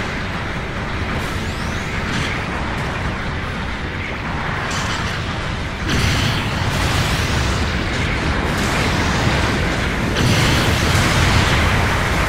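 A heavy machine roars and rumbles steadily as it moves.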